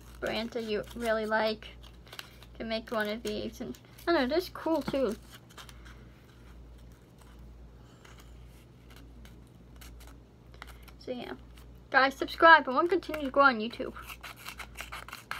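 Paper rustles and crinkles in hands.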